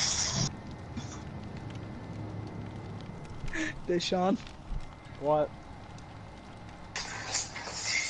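A campfire crackles and pops softly.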